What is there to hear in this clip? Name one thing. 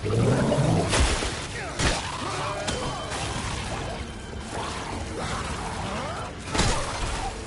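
Heavy blows strike flesh.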